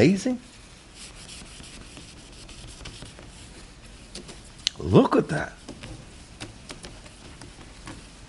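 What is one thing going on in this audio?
A cloth rubs against a plastic headlight cover.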